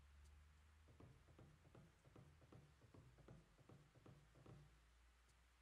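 Footsteps tap faintly and steadily.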